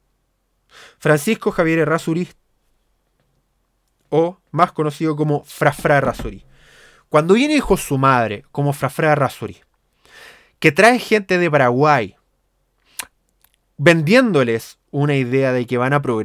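A young man speaks calmly and close into a microphone.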